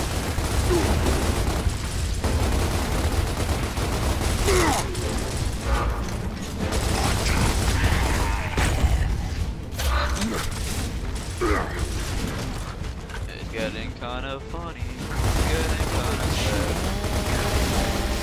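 Gunfire rattles in bursts.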